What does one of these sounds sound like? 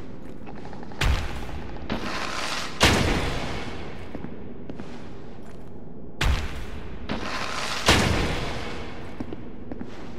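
A heavy club lands with deep booming thuds.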